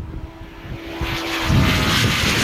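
A motorcycle roars past up close.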